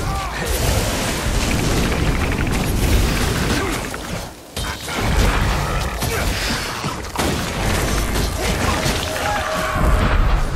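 Blows thud as a warrior strikes a creature.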